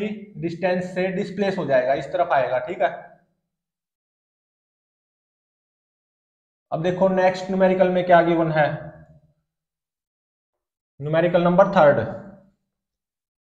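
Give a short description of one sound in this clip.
A young man speaks clearly, explaining in bursts with pauses.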